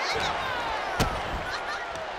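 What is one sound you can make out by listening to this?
A body slams onto a wrestling mat with a thud.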